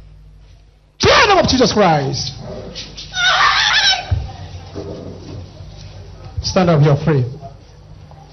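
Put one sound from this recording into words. A woman screams and wails loudly.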